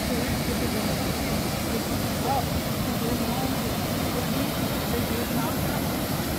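A waterfall roars steadily and rushing water churns below it.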